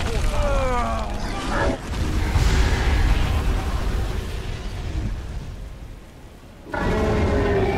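Flames roar.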